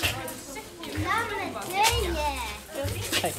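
A young child chatters nearby.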